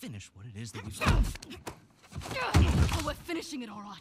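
A punch lands with a heavy thud.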